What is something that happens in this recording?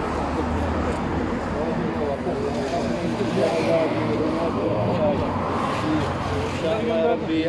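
A crowd of men talk over one another nearby outdoors.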